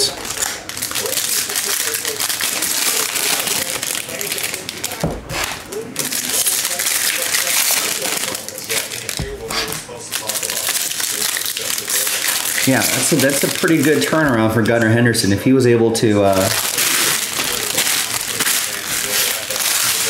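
Trading cards rustle and slap as they are handled.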